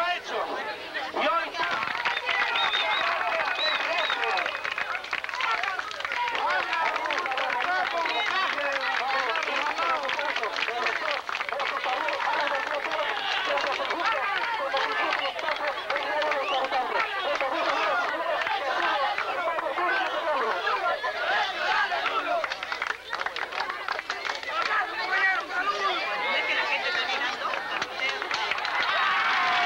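A dense crowd of men and women chatters and shouts all around.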